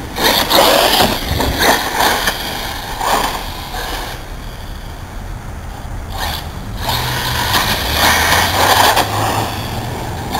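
A small electric motor whines as a toy car races over pavement.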